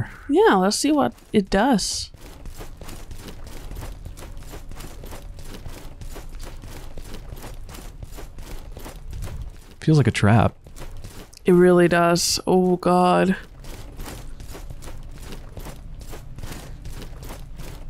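Footsteps run quickly and steadily over hard stone.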